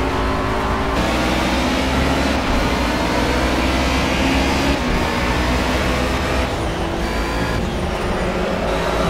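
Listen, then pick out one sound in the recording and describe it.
Rain patters on a car's windscreen.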